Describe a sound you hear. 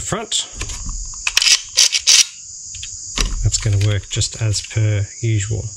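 Plastic parts click and clatter as they are handled.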